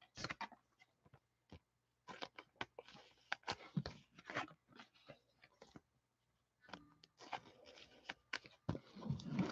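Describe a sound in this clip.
Plastic card sleeves rustle and crinkle softly as cards are handled.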